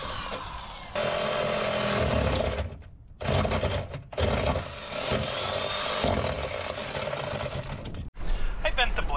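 A jigsaw buzzes loudly, cutting through metal.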